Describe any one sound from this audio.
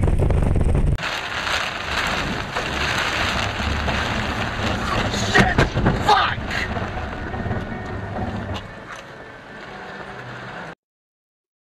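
Heavy rain pelts a car's windscreen.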